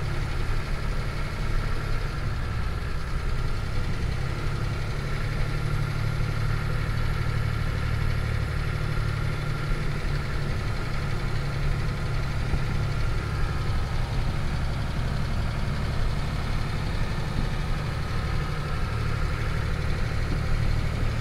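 An old engine rumbles steadily from inside a vehicle cabin.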